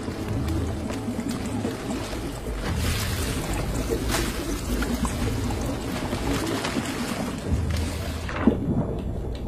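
Water sloshes and splashes close by.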